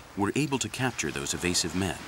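Waves wash gently against rocks.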